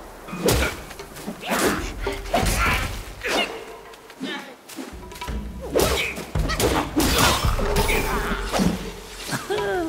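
Fighters grunt and cry out as they are hit.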